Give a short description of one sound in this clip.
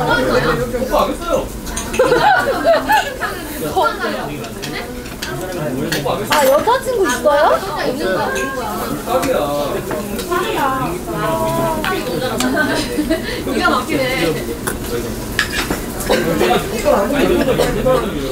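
Meat sizzles on a hot grill.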